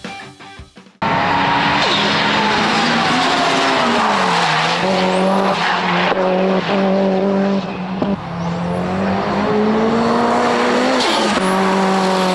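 A race car engine revs hard, rising and dropping as the gears shift.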